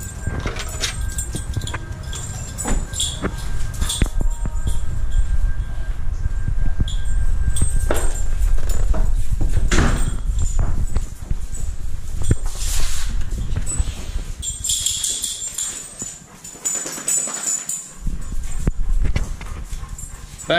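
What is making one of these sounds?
Footsteps thud close by on a hard floor.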